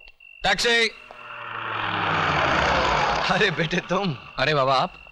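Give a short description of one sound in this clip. A car engine rumbles as it approaches.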